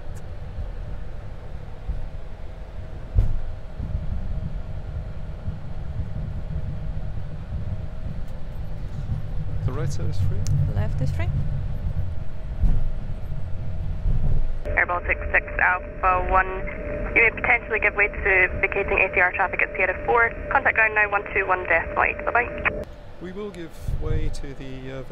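Jet engines hum with a steady low rumble.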